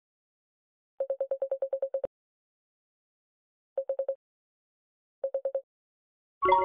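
Rapid soft beeps chatter in short bursts.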